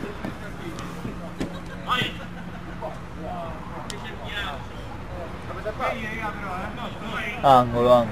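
Men shout to each other outdoors during a football game.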